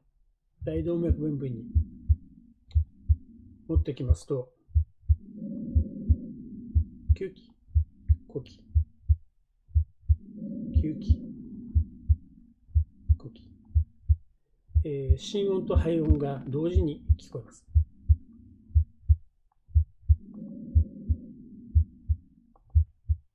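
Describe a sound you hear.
A soft whooshing heart murmur swells between the beats.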